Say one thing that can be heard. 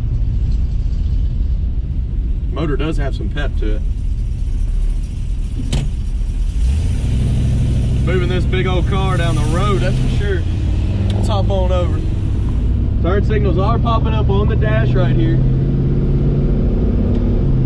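A car engine rumbles low and steadily.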